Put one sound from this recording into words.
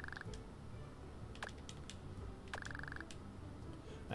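Short electronic blips chirp from a video game.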